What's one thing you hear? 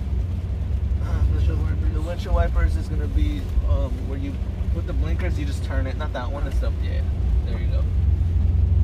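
A man talks with animation close by inside the car.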